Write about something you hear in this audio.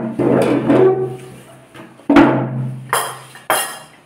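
A plate clinks against a table.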